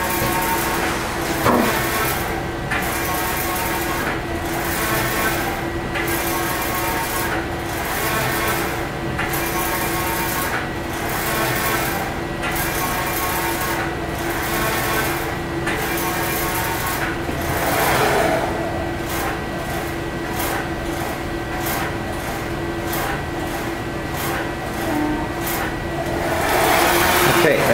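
A machine whirs as its printing carriage slides back and forth in a steady rhythm.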